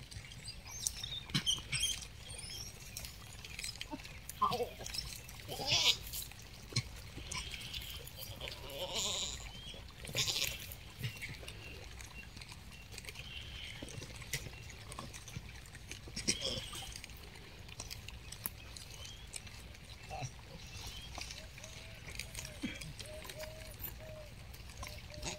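Monkeys chew fruit with soft wet munching.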